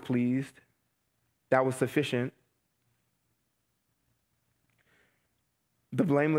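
A man reads aloud slowly into a microphone, with pauses.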